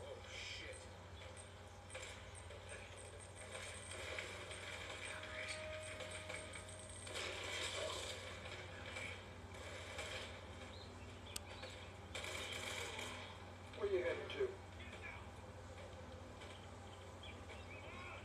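Video game sounds play through a small television speaker.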